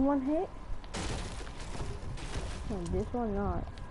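A pickaxe strikes wood with a thud.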